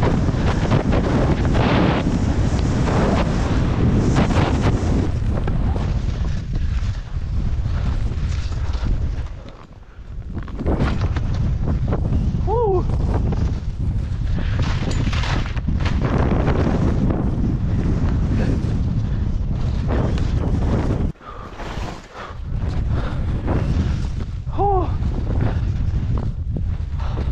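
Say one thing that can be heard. Skis hiss and scrape through deep snow.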